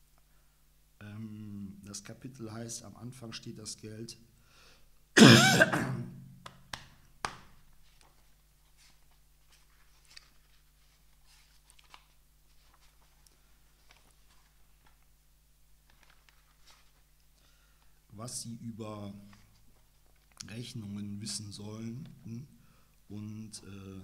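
A man reads aloud calmly, close to a microphone.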